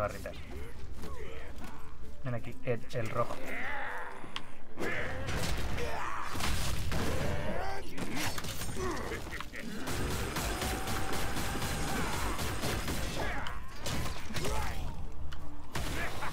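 Blades clash in a game fight.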